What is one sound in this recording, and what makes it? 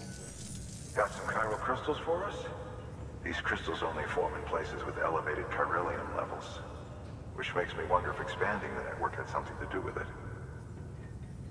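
A man speaks calmly through a small speaker.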